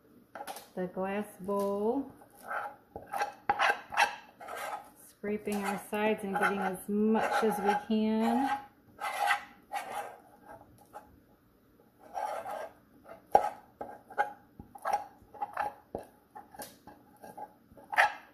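A metal spoon scrapes batter from a metal pot.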